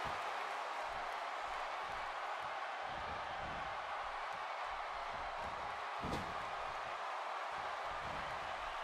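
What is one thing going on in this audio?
Blows thud as wrestlers strike each other.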